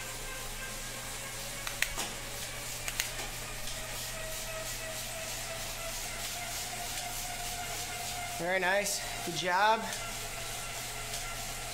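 A stationary bike trainer whirs steadily and slowly rises in pitch.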